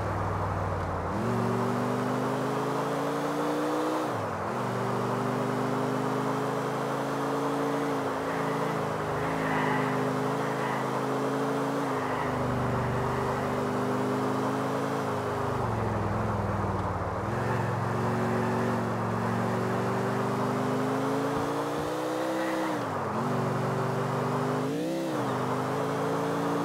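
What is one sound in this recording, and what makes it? A car engine roars steadily and shifts gears as the car speeds along.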